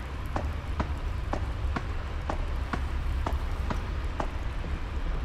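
Footsteps thud slowly across hollow wooden boards.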